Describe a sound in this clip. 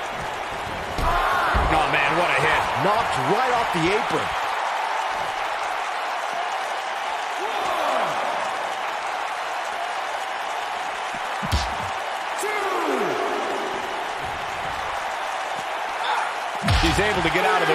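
A wrestler slams heavily onto the floor.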